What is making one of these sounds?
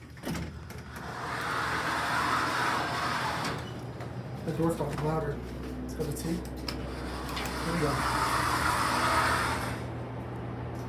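Elevator doors slide open and shut with a rushing rumble.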